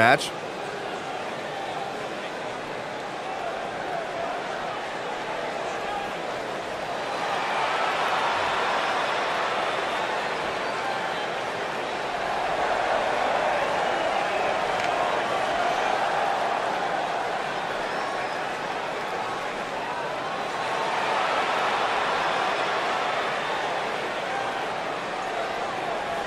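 A large crowd cheers loudly in a big echoing arena, swelling and easing in waves.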